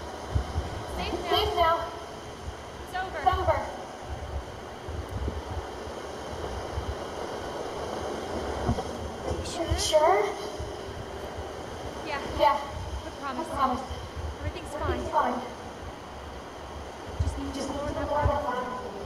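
A young woman speaks in a soft, worried voice.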